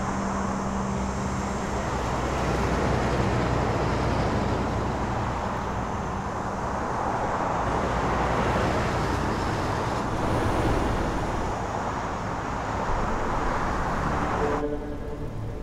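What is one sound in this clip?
Traffic roars steadily past on a highway.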